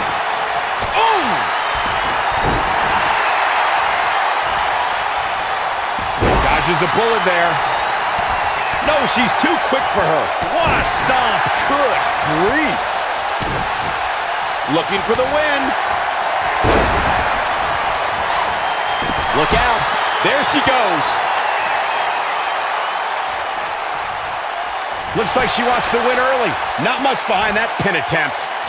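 Bodies slam onto a wrestling ring with heavy thuds.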